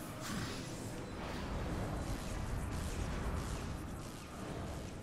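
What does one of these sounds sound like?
Air rushes and whooshes steadily as a figure falls.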